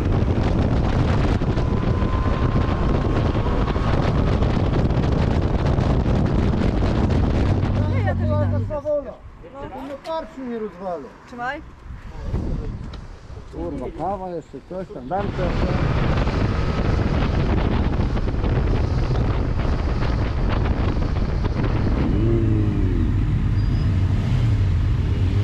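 A motorcycle engine roars steadily while riding.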